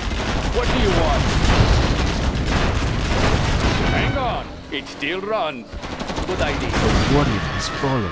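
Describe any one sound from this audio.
Explosions boom and rumble close by.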